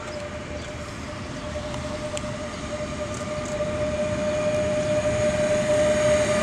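An electric locomotive approaches with a steady hum, growing louder.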